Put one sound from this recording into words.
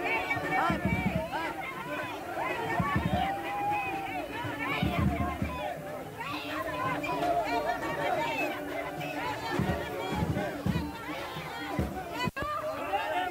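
A crowd of men and women chant slogans loudly outdoors.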